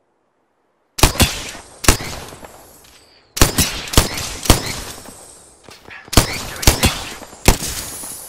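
A gun fires single shots in a video game.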